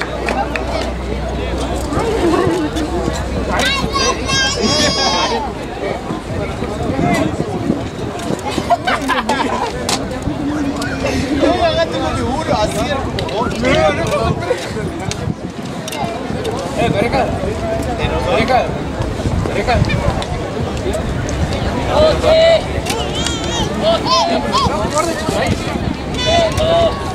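Young men shout and call out to one another outdoors.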